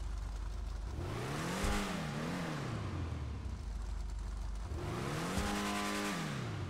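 A car engine revs up and falls back, twice.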